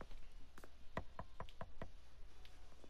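A man knocks on a wooden door with his knuckles.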